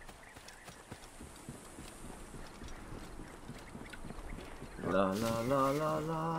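Footsteps run quickly over grass and rocky ground.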